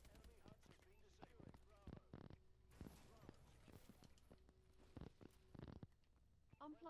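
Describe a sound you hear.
Gunshots crack in short, quick bursts.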